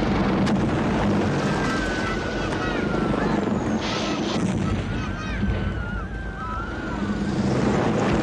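An explosion booms and rumbles across the hills.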